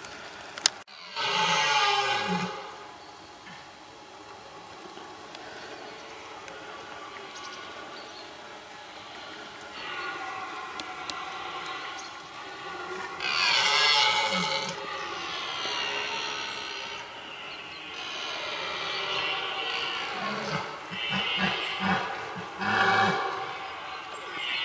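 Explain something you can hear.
A stag bellows in deep, drawn-out roars, outdoors.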